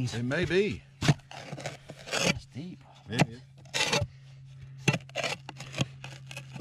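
A metal tool scrapes and knocks against dry, crumbly dirt.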